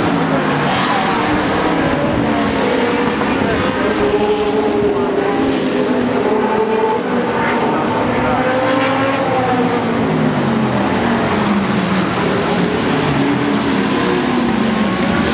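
Racing car engines roar loudly, rising and falling in pitch as cars speed past.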